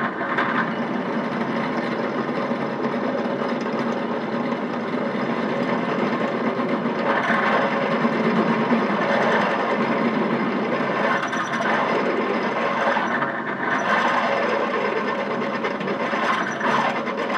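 A drill press motor hums steadily.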